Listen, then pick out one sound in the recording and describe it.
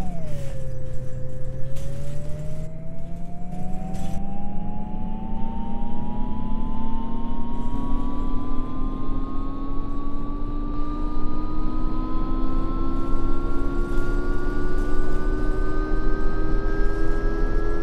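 A bus engine whines and rises steadily in pitch as the bus speeds up.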